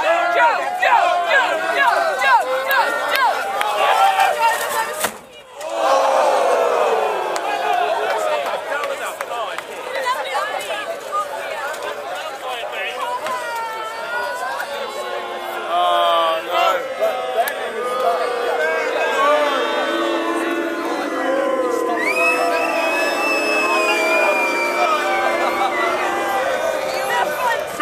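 A crowd of young men and women talks and shouts loudly outdoors.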